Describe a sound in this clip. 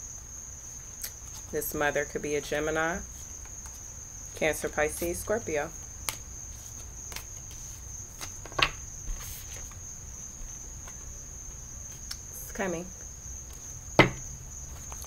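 Cards tap and slap onto a table.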